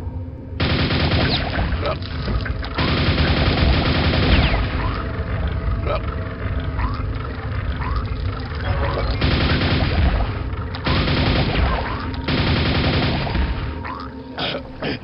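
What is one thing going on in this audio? A rapid-fire gun fires in long, loud bursts.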